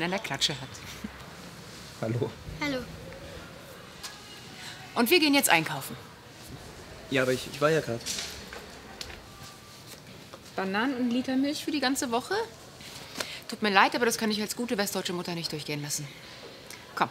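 A woman speaks warmly and with animation, close by.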